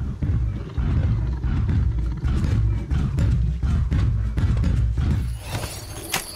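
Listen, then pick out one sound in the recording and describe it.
A large mechanical beast stomps heavily and thuds.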